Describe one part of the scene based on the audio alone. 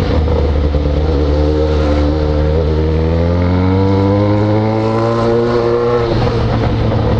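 A motorcycle engine revs up, rising in pitch, then drops.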